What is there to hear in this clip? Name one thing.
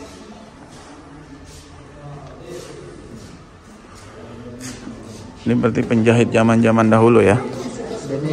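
Footsteps walk on a stone floor.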